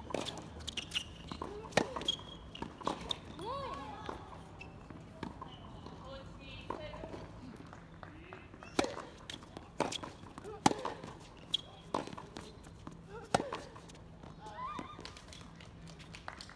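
Tennis shoes squeak on the court.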